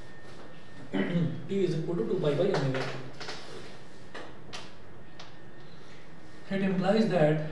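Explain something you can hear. A man explains calmly, speaking close by.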